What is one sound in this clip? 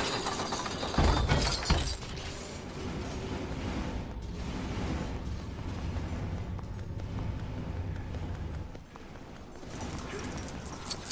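Plastic bricks clatter as objects break apart.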